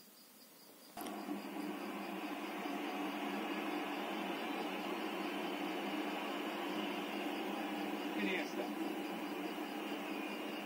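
A stadium crowd roars steadily through a television speaker.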